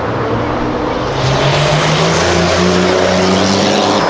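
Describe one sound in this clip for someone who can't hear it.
Tyres squeal as a car drifts.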